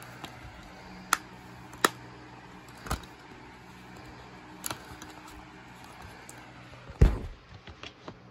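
A plastic disc case clicks and rattles as it is handled.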